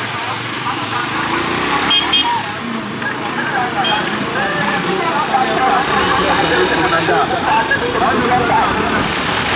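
A motorbike engine rumbles steadily while riding.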